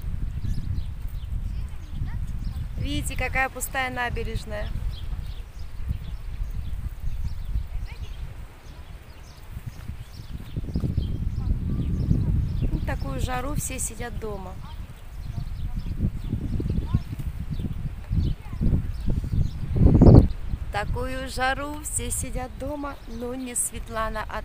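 Wind blows outdoors and rumbles against the microphone.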